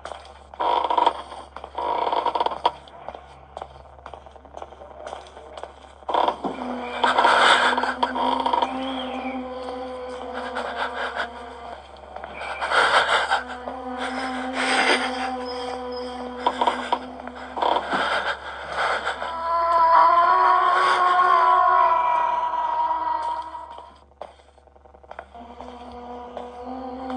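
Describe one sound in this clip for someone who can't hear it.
Eerie game music and sound effects play from a small tablet speaker.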